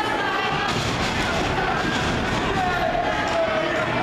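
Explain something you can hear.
A wrestler slams onto the ring mat with a thud.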